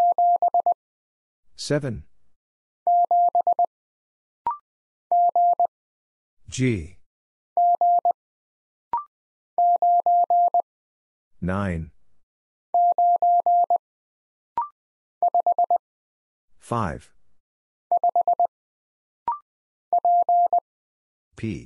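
Morse code beeps tap out in short and long steady tones.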